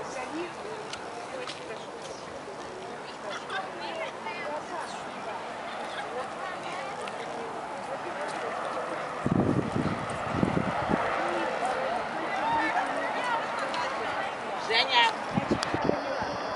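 A crowd of people chat and murmur at a distance outdoors.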